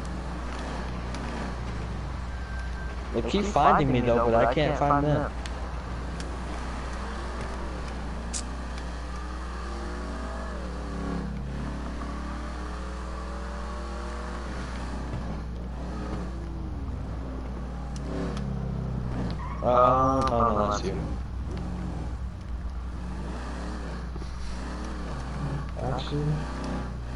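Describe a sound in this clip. Car tyres roll over the road.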